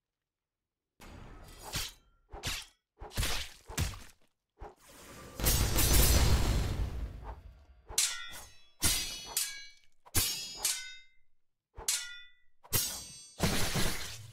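Blades whoosh and clash in quick, sharp bursts.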